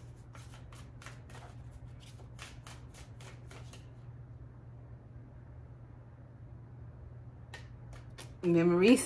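Playing cards riffle and flick as a woman shuffles them.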